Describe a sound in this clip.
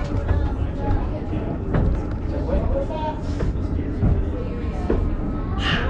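A rail car rumbles and rattles steadily down its tracks.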